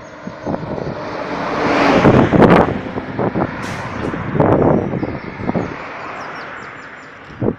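A car drives past close by, its engine rising and fading.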